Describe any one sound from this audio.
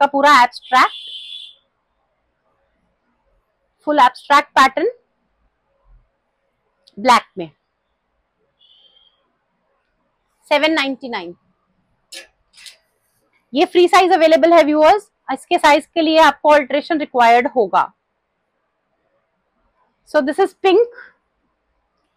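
A woman speaks with animation close by, in short bursts with pauses.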